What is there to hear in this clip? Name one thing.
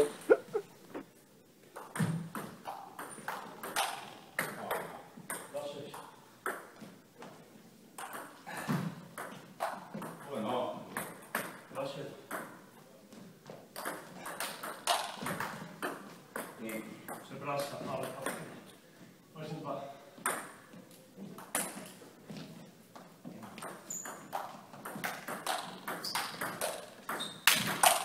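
A table tennis ball clicks sharply back and forth off paddles and a table in an echoing hall.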